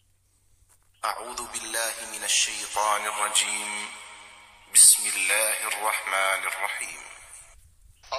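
A young man speaks close by, calmly.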